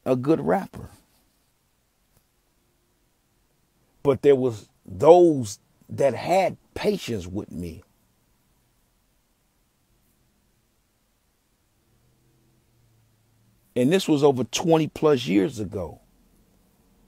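A young man speaks casually in bursts, close up, with long pauses.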